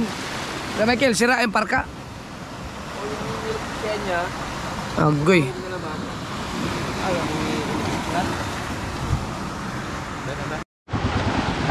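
A young man talks close to the microphone.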